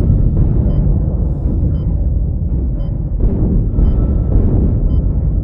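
A futuristic gun fires in short, crackling bursts.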